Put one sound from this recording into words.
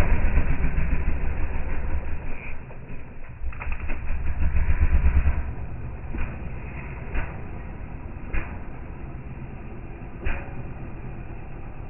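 A dirt bike engine revs hard and sputters, then drops to a low idle.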